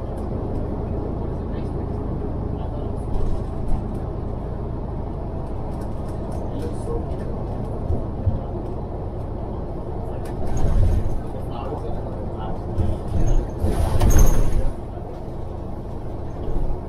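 A car's engine and tyres rumble steadily from inside while driving.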